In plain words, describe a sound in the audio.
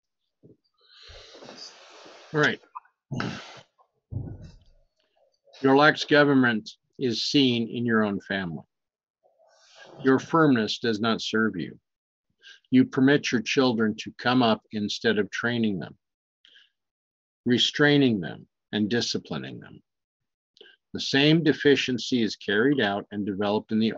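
A middle-aged man talks calmly and close to a microphone.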